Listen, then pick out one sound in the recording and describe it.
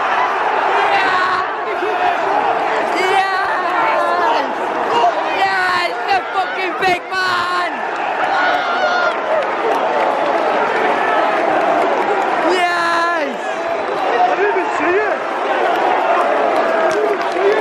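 Men close by shout and chant with excitement.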